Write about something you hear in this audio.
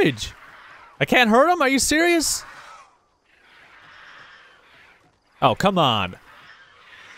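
A giant spider creature lets out shrill, wavering shrieks.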